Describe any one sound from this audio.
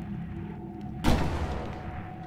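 A sniper rifle fires a single loud shot that rings out.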